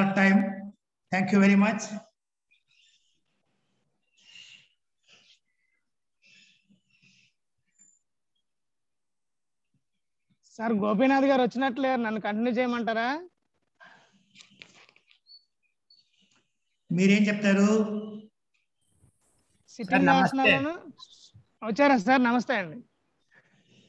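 A young woman speaks calmly and close by, giving instructions.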